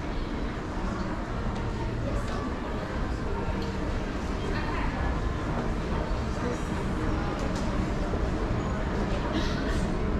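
An escalator hums steadily nearby.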